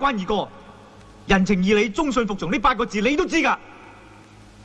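A man speaks earnestly.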